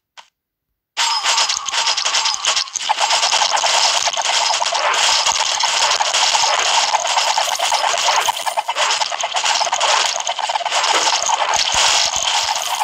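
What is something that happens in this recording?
Dense game battle effects with shots and explosions crackle steadily.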